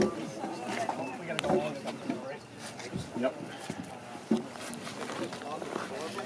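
Heavy wooden beams knock against each other.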